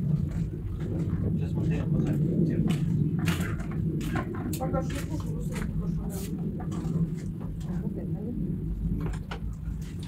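A goat crunches food close by.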